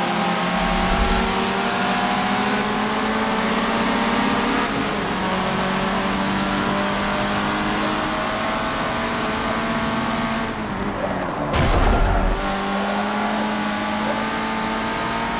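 Several other race car engines drone nearby.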